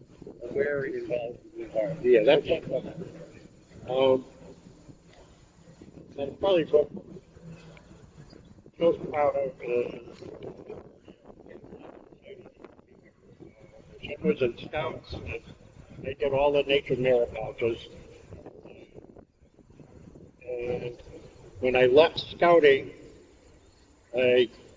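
An elderly man talks calmly and with animation close by, outdoors.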